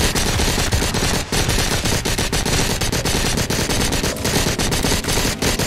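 A machine gun fires rapid, continuous bursts close by.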